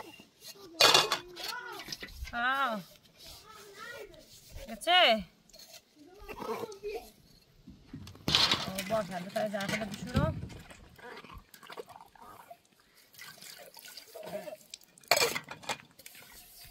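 Metal dishes clink and clatter as they are washed.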